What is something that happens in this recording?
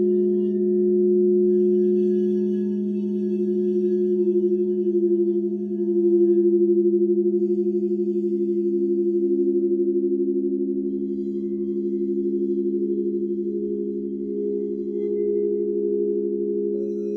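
Singing bowls hum in long, steady, overlapping tones.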